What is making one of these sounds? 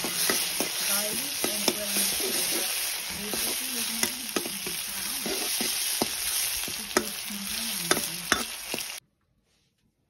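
Food sizzles loudly as it fries in a hot pan.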